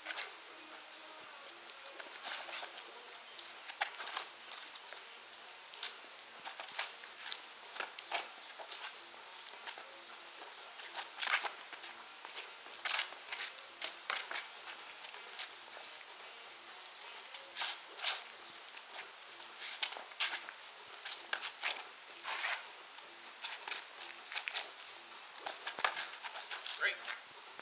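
Sneakers scuff and shuffle on pavement.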